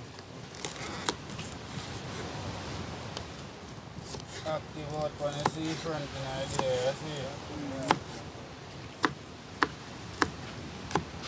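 A knife chops vegetables on a wooden board with sharp knocks.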